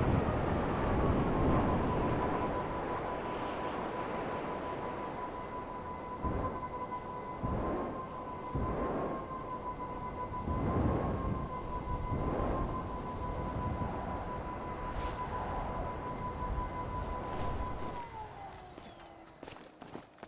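A flying vehicle's engine hums at a steady high pitch, then drops away.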